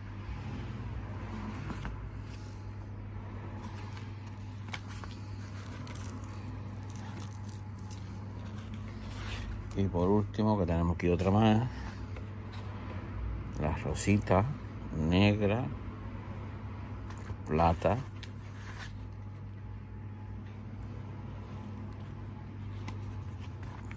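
A cap's mesh fabric rustles softly as it is handled.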